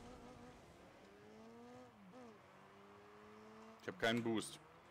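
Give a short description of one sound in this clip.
A video game car's engine hums, rising and falling in pitch.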